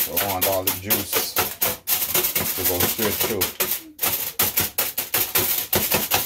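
Aluminium foil crinkles as hands press it down.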